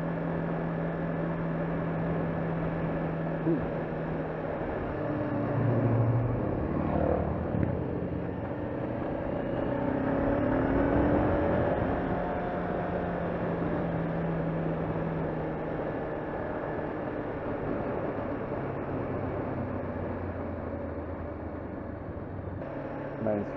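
A motorcycle engine hums steadily as the bike rides along a road.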